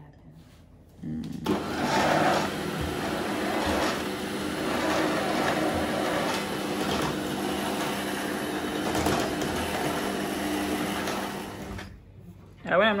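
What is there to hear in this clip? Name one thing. An electric stand mixer whirs steadily.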